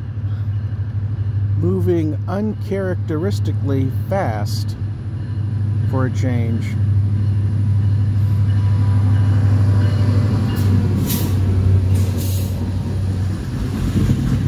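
A diesel locomotive engine rumbles loudly as it approaches.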